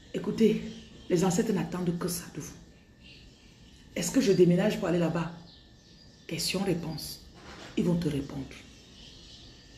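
A woman speaks close to the microphone with animation, in short bursts.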